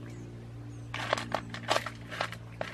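Small stones clatter and click.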